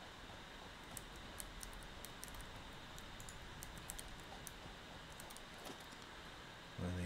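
Short soft clicks tick now and then from a game's menus.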